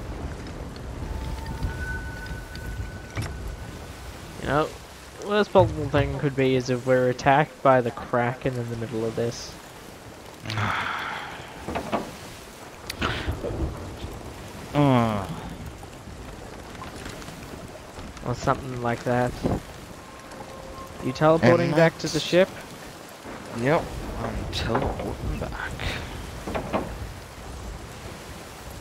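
Stormy waves crash and surge around a wooden ship.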